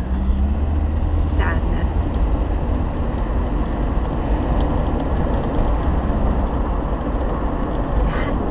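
A car's engine and road noise rumble steadily.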